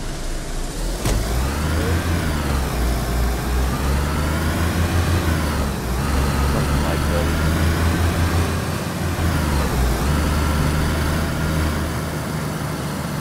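A car engine revs up and down as the vehicle drives.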